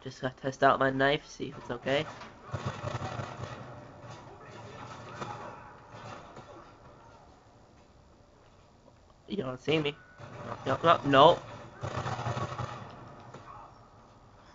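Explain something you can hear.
Video game gunfire plays through a television speaker.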